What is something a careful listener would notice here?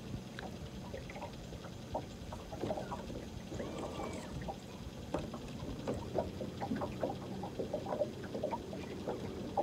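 A fishing reel clicks and whirs as its line is wound in.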